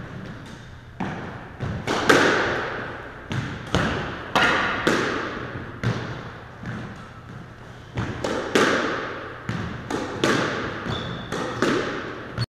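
A squash ball smacks hard against the walls, echoing in a large hard room.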